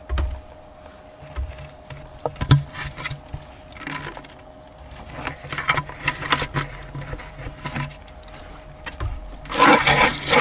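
A plastic scoop scrapes and squelches through wet mortar in a bucket.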